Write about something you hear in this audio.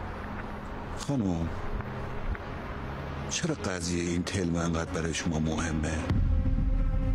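A man speaks with surprise and close by.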